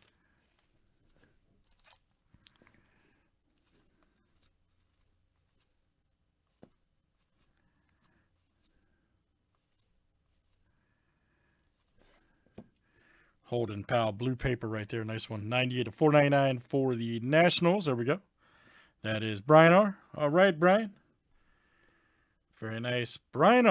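Trading cards slide and flick softly against each other.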